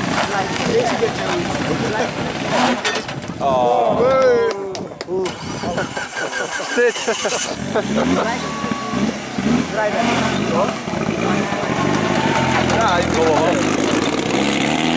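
A rally car engine revs loudly and roughly, rising and falling in pitch.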